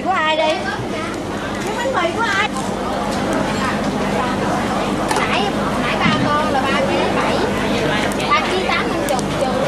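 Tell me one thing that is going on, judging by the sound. Seafood sizzles on a hot grill.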